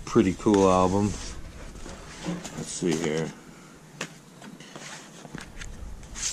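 Cardboard record sleeves slide and rustle as they are flipped through.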